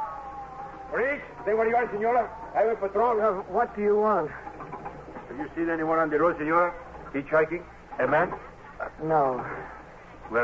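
A man reads out into a microphone, heard through an old radio broadcast.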